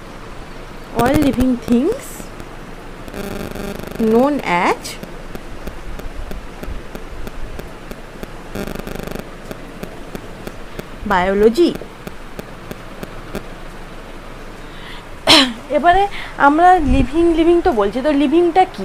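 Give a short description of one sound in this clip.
A young woman speaks calmly close by, in short bursts with pauses.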